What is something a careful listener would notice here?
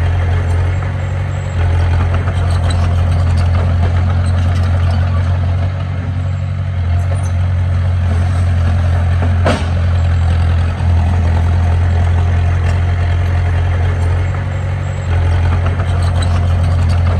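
Bulldozer tracks clank and squeak as the machine moves over dirt.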